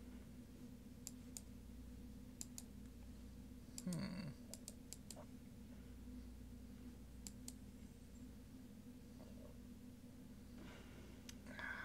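A game plays soft clicking card sounds.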